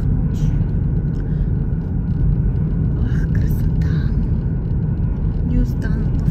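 A car engine hums and tyres roar steadily on the road from inside a moving car.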